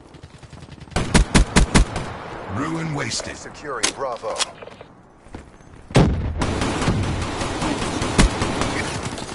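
A rifle fires quick bursts of loud shots.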